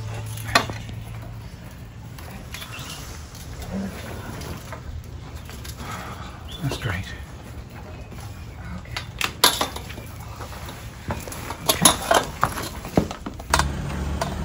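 A wire net rustles as an animal is dragged out.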